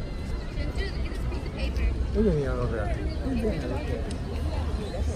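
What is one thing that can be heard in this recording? Men and women chatter at a distance outdoors.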